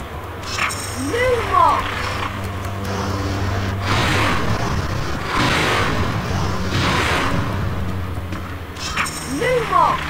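A magic spell casts with a bright, swooping chime.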